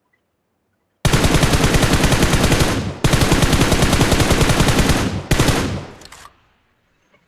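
Automatic rifle fire rattles in rapid, loud bursts.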